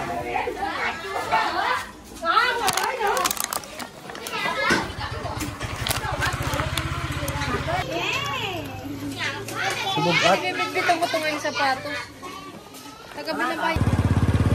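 Children chatter and shout excitedly close by.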